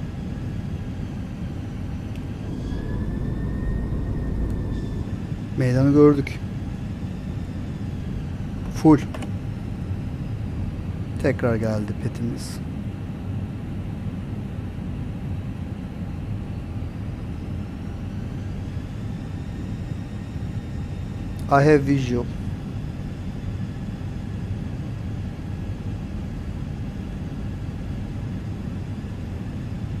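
A steady engine drone hums in a cockpit.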